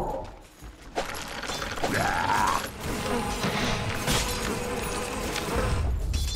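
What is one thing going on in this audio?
Magic spells whoosh and burst in a battle game.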